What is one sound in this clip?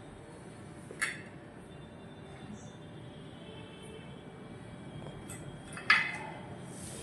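Stone tile pieces clack sharply as they are set down against each other.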